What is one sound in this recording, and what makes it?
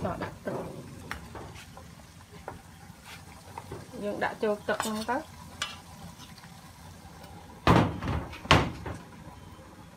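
Water boils in a pot.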